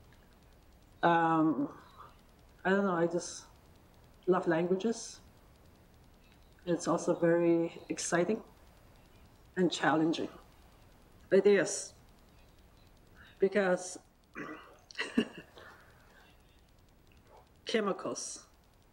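A middle-aged woman speaks slowly and calmly into a microphone, with long pauses.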